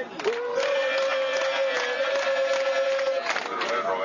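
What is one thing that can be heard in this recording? A crowd of men and women sings loudly together.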